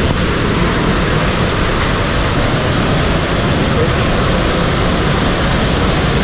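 Water rumbles and bubbles in a muffled way underwater.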